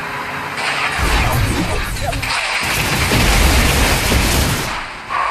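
Game sound effects of magical attacks whoosh and crackle.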